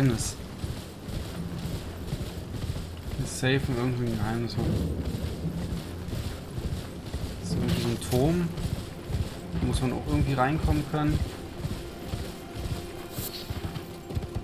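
A horse's hooves thud on grass and stone.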